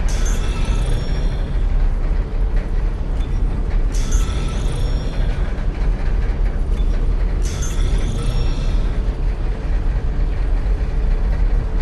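A low, steady rumbling drone hums throughout.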